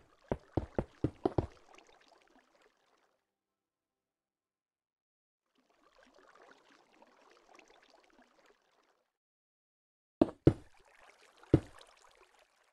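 Stone blocks are placed with short, dull knocks.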